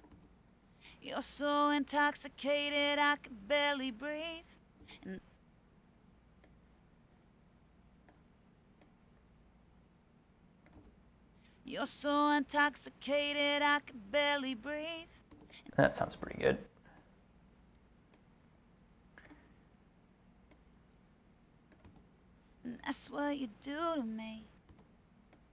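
A recorded singing voice plays back in short phrases over speakers.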